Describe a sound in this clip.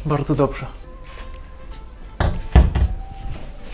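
A cabinet door swings up and clicks into place.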